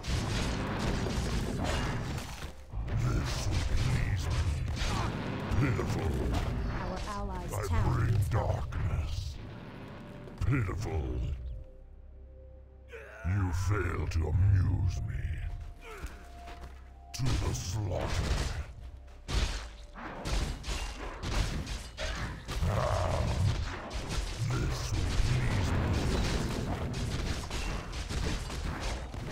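Swords and axes clash in a fight.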